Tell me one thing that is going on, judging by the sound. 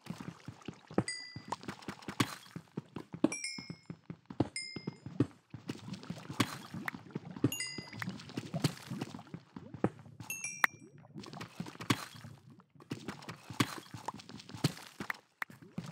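Stone blocks crack and break apart.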